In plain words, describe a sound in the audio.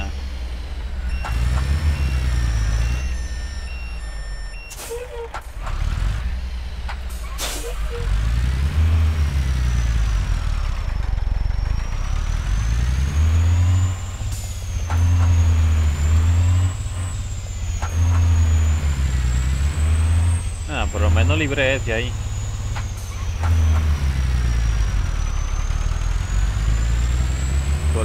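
A diesel semi-truck engine labours under load, its revs rising and falling through the gears.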